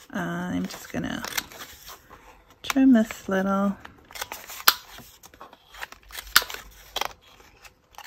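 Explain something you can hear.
A paper punch clicks sharply as it cuts through card.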